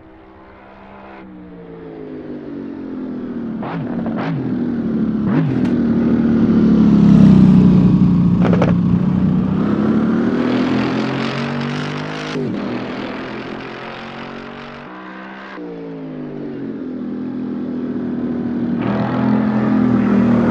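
A sports car engine roars closer, revving up and down through gear changes.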